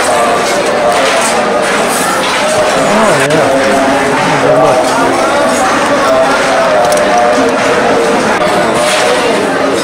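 A large crowd of men and women chatters loudly all around.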